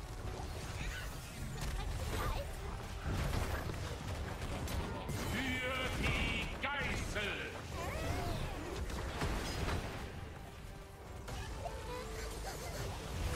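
Magic spells whoosh and zap.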